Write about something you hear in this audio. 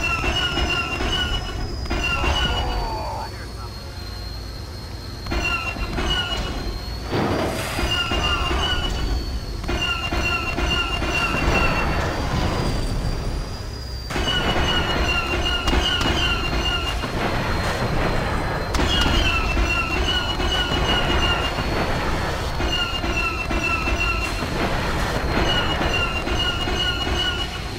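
A tank engine hums steadily.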